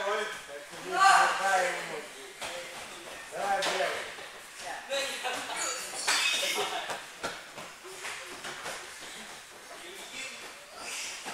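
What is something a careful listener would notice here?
Young people call out and talk with animation in an echoing hall.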